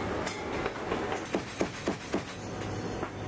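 Sharp bangs ring out in a quick series.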